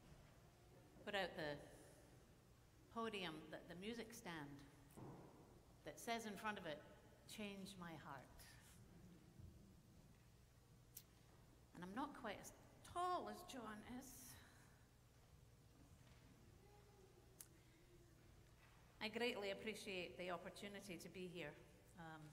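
A middle-aged woman reads aloud calmly through a microphone in a large echoing hall, with long pauses.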